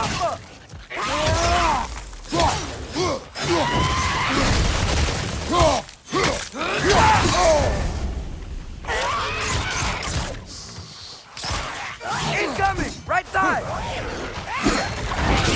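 Heavy weapon blows strike and clash.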